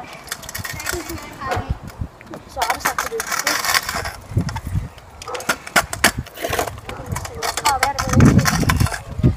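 A scooter deck clatters and knocks against concrete.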